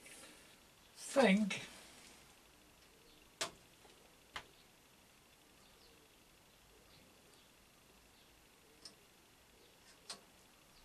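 Metal objects clatter and knock as they are moved around on a shelf.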